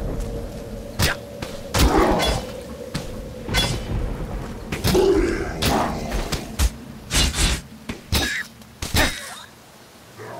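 Weapons strike and slash at enemies in quick bursts.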